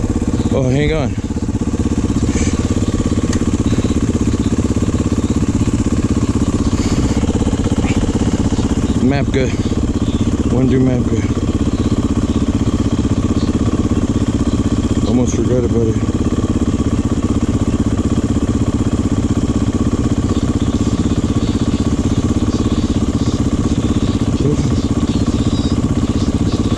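A motorcycle engine idles with a steady, throbbing rumble close by.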